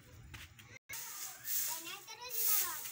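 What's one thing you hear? A broom sweeps dry leaves.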